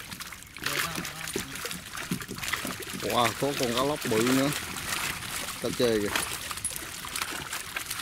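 Fish splash and flap in water.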